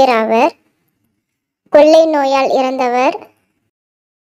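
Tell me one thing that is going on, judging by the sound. A young woman speaks brightly and clearly, close to a microphone.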